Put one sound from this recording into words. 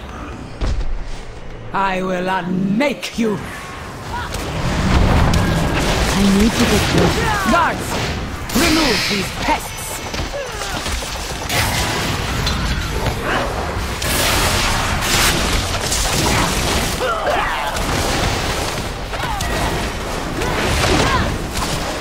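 Magic spells whoosh and crackle as fighters clash in battle.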